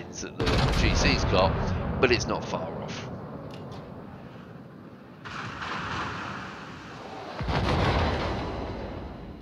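Heavy shells crash into the water with deep booming splashes.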